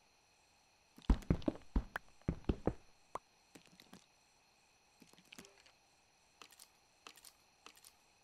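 A pickaxe chips at stone in short, scattered knocks.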